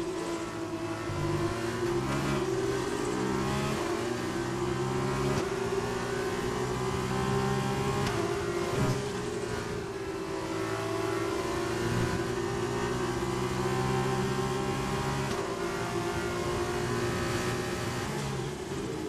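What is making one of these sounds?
A racing car engine screams at high revs, rising and dropping as the gears change.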